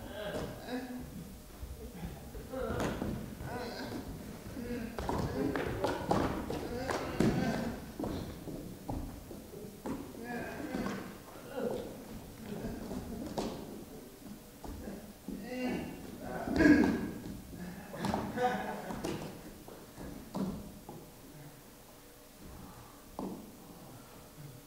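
Bodies slide and shuffle softly across a stage floor.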